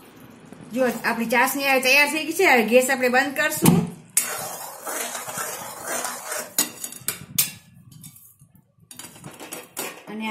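Liquid bubbles and sizzles in a metal pan.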